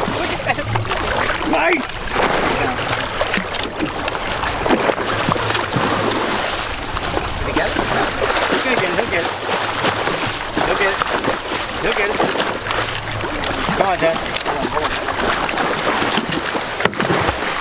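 Water splashes and churns loudly close by.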